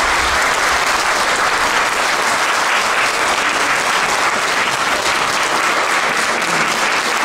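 Children sing together in a large echoing hall.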